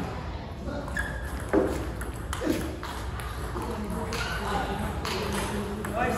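A table tennis ball clicks sharply off paddles and the table.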